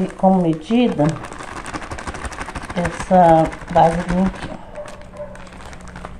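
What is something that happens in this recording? Powder pours from a bag into a cup with a soft rustle.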